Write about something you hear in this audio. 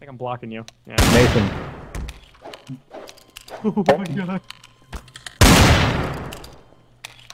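A pistol fires loud shots that echo and die away.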